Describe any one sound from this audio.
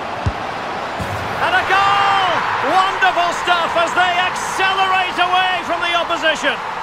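A crowd roars loudly.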